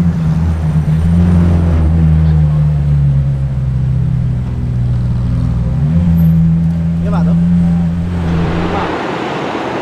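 A sports car engine rumbles loudly as the car pulls away.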